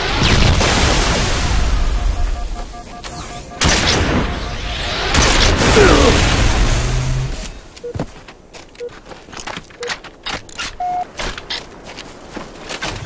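Guns fire in rapid bursts with loud explosions.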